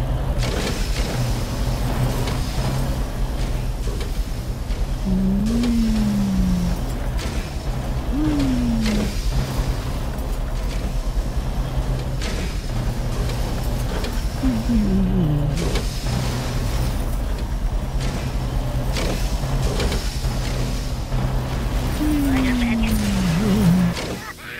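Heavy machinery hums and grinds steadily.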